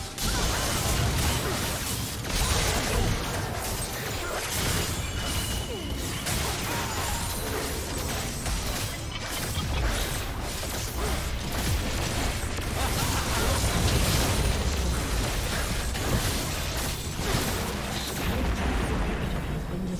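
Spell blasts and weapon hits clash rapidly in a fantasy battle game.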